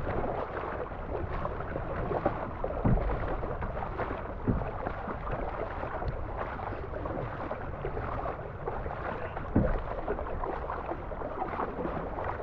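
Water rushes along the sides of a moving kayak.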